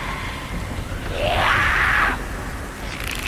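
A creature lets out a harsh, raspy shriek close by.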